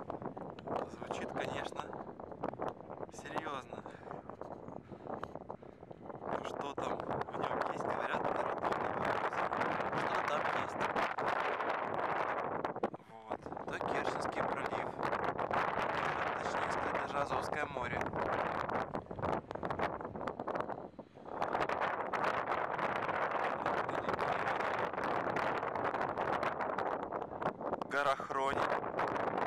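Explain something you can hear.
Wind blows hard outdoors, buffeting loudly in gusts.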